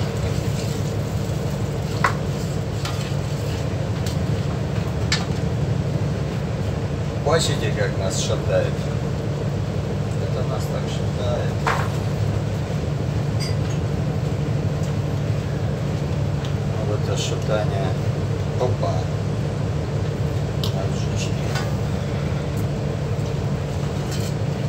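A spatula scrapes against a metal pan.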